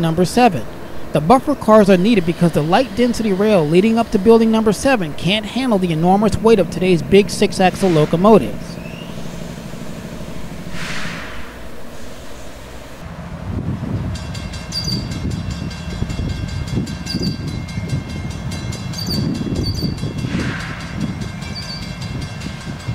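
A diesel locomotive engine rumbles low as a train approaches.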